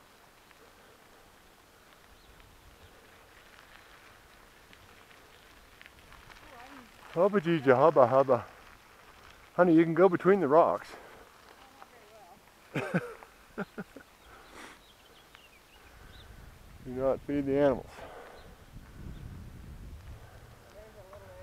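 Bicycle tyres crunch softly over a gravel road.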